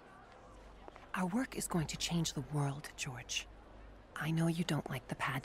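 A woman speaks calmly in reply.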